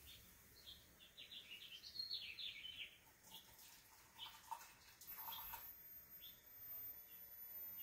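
A bamboo whisk swishes briskly in a tea bowl.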